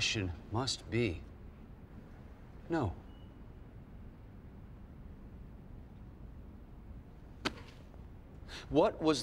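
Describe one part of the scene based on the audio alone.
A man speaks calmly in short phrases.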